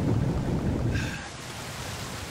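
A swimmer breaks the surface of water with a splash.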